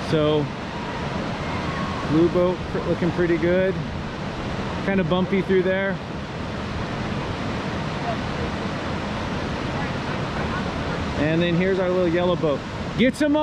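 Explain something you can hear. Rapids rush and roar in the distance.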